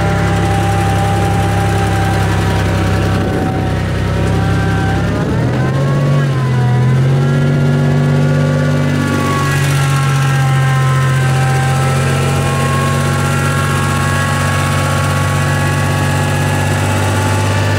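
Tyres spin and churn through thick mud.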